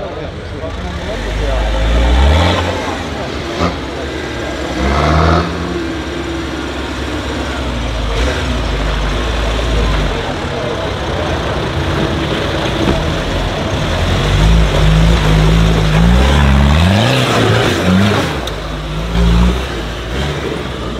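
An off-road truck's engine roars and revs hard as it climbs.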